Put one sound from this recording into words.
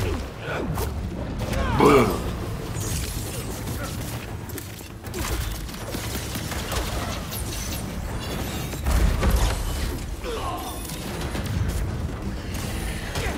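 Punches and kicks thud during a fast fight.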